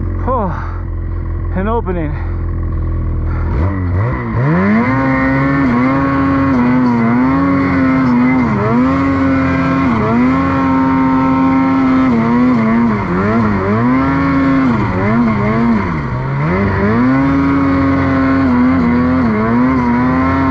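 A snowmobile engine roars close by, revving up and down as it climbs.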